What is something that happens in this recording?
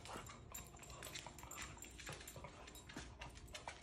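A dog sniffs eagerly.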